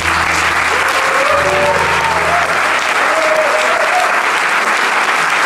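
Two acoustic guitars play and let the last chords ring out.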